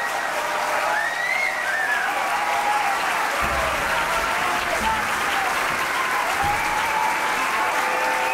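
A live band plays music loudly on a stage.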